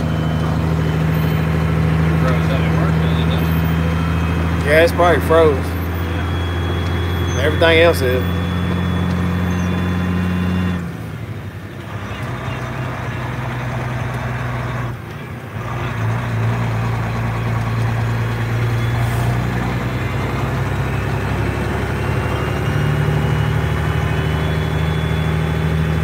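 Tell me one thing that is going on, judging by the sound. A vehicle engine drones steadily, dropping briefly in pitch twice as gears change.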